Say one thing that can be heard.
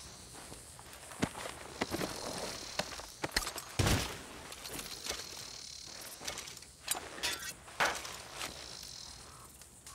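Cloth and small items rustle as someone rummages through belongings.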